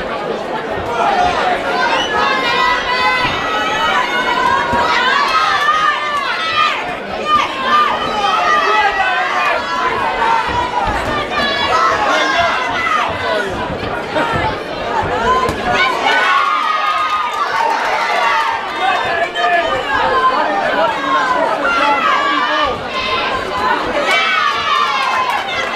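A crowd shouts and cheers loudly.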